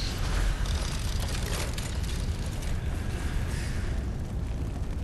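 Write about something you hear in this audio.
A magical shimmer swells and sparkles, then fades away.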